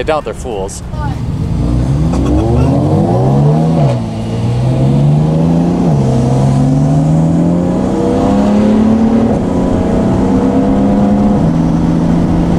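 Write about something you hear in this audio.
A car engine revs hard as the car speeds up, shifting up through the gears.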